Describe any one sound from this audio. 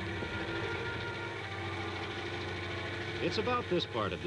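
A blender whirs steadily.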